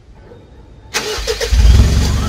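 A truck engine rumbles loudly through its exhaust.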